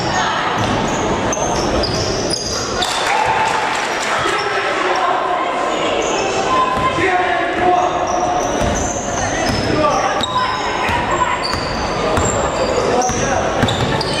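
Young women shout to each other across an echoing hall.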